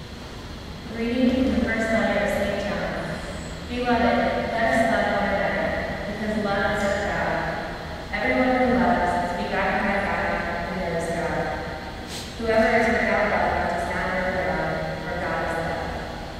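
A young woman speaks emotionally into a microphone in an echoing hall.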